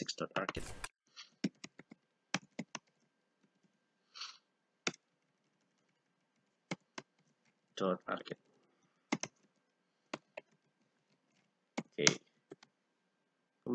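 Keyboard keys click in quick bursts of typing.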